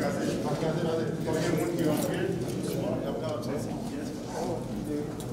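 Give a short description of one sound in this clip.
A group of men and women sing together slowly.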